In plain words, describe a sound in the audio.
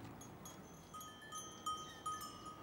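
Sheep munch hay nearby.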